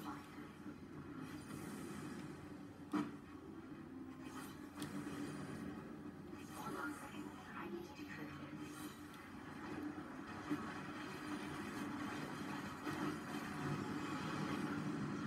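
A video game soundtrack plays through television speakers.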